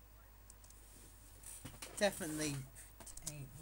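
A young person shifts about close by, with rustling and bumping.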